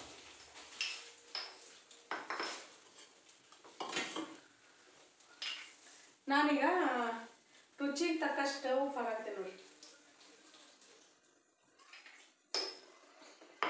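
Metal utensils clink and knock against pans.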